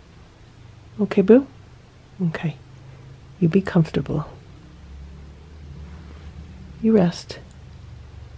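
A cat meows softly several times, close by.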